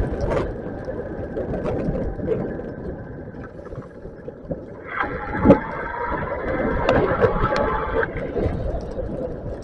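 Raindrops patter on a car windshield.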